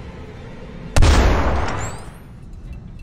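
A revolver fires a single loud shot.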